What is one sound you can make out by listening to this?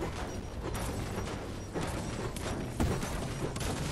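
A pickaxe strikes metal with sharp clangs.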